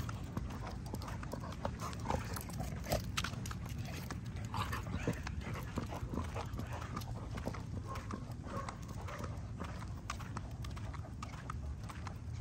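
Dogs' paws patter and scrape on concrete as they run and play.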